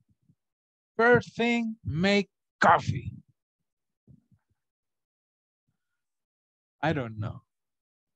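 A man speaks in short bursts, heard through an online call.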